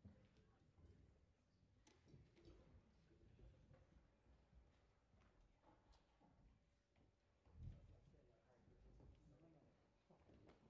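Footsteps and quiet shuffling sound on a stage in a large, echoing hall.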